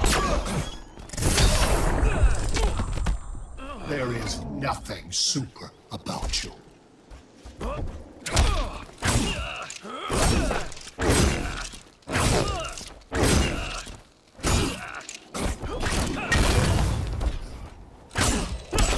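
Heavy blows and impacts land in a video game fight.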